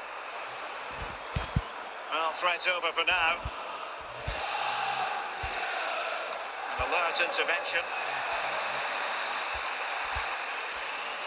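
A football is kicked with dull, short thuds.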